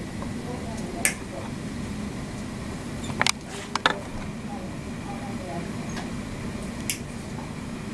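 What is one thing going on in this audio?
Nail nippers snap through a toenail with sharp clicks.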